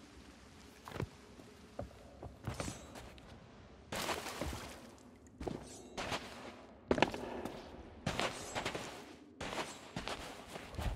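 Footsteps thud on wooden boards and soft ground.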